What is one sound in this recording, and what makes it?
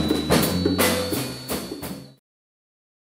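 A jazz band plays with upright bass and drums.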